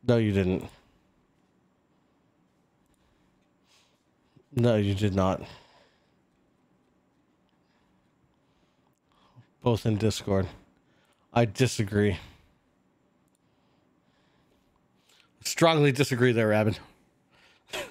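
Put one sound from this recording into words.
A man talks calmly in short bursts close to a microphone.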